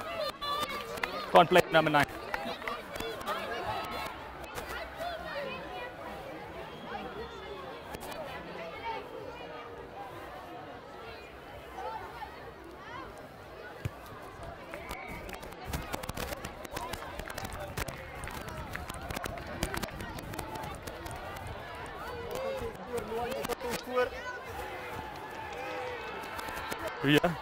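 A crowd of children and adults chatters and shouts outdoors.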